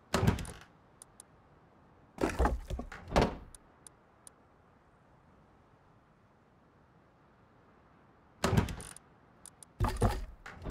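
Short soft clicks tick now and then.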